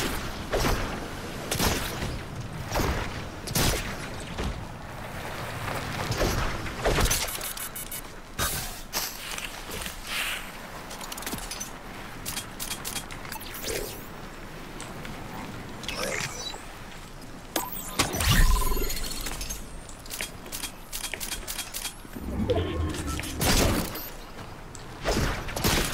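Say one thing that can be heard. Footsteps thud rapidly over ground.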